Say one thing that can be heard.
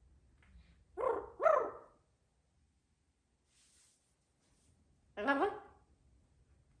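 A parrot squawks loudly in short bursts.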